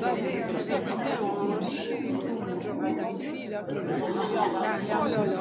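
A crowd of men and women chatter at once in a large echoing hall.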